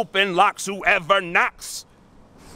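A man speaks loudly and theatrically, close by.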